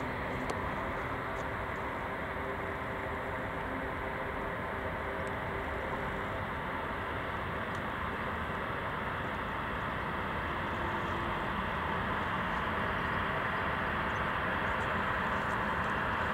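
Jet engines roar steadily and grow louder as an airliner rolls closer.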